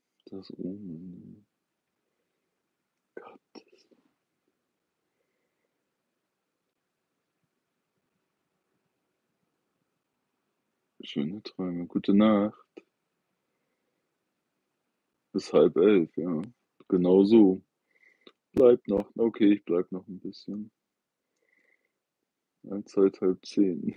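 A middle-aged man talks calmly and close by, with pauses.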